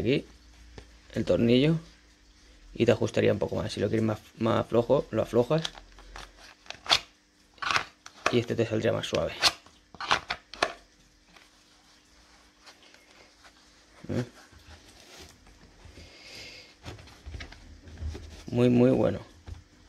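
Hands rustle and shift a leather holster.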